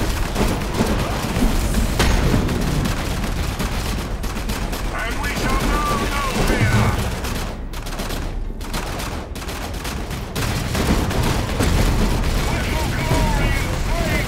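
Gunfire and explosions clatter in a noisy battle.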